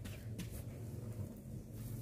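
Hands press and pat loose soil.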